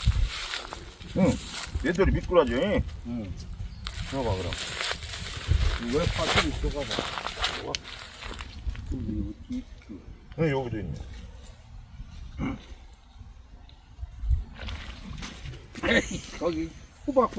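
An elderly man talks casually outdoors, close by.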